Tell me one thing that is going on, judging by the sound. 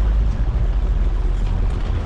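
A suitcase rolls on wheels over paving stones.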